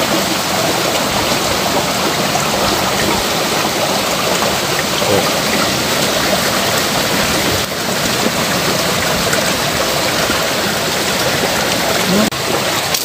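A shallow stream ripples and gurgles steadily over rocks close by.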